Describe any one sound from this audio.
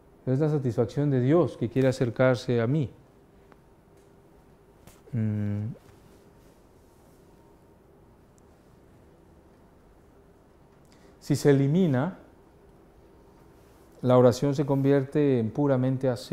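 A middle-aged man speaks calmly through a microphone, with long pauses between phrases.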